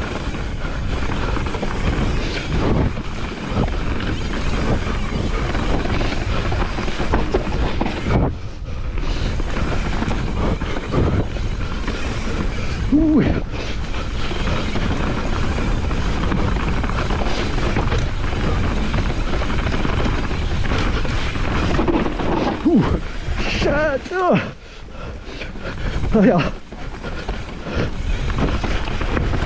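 Wind buffets loudly as a bike speeds downhill.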